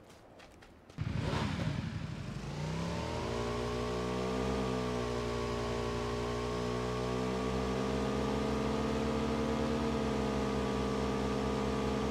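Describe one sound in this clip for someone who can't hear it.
A motorbike engine starts and roars steadily as it speeds up.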